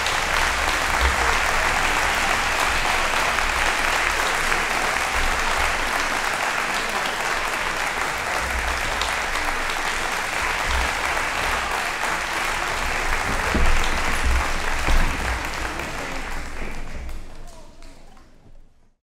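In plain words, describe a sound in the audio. A large crowd applauds in a big echoing hall, then the applause fades away.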